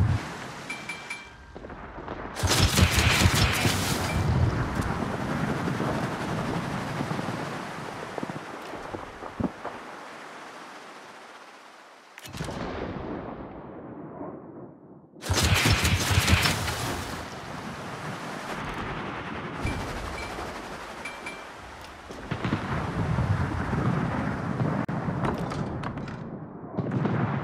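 A destroyer's hull rushes through the water.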